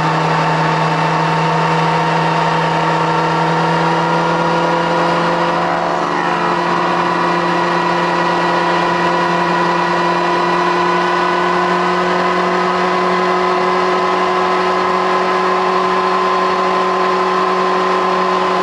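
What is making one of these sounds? A motorcycle engine roars at high revs close by, its pitch climbing slowly.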